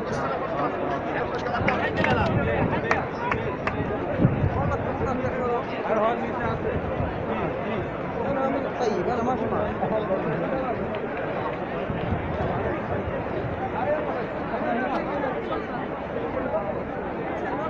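Men and women talk loudly nearby.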